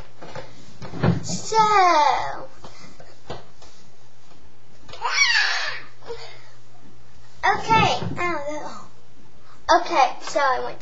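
A young girl talks and squeals excitedly close to a microphone.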